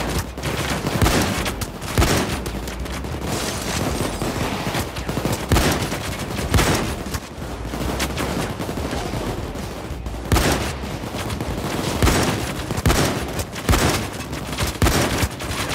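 A shotgun fires in loud single blasts.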